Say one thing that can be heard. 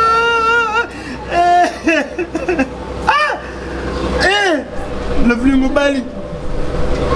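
A young man speaks in a pleading, tearful voice, close by.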